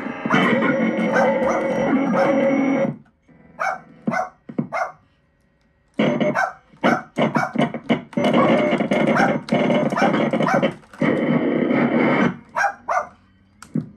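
A small electronic keyboard plays bright synth chords and notes close by.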